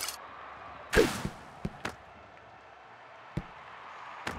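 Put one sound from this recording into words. A ball is kicked with short thumps.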